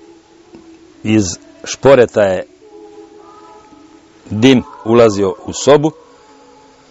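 An elderly man speaks calmly and slowly, close to a microphone.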